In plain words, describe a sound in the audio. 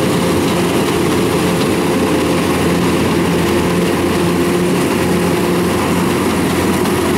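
Harvester machinery clatters and rattles while cutting rice.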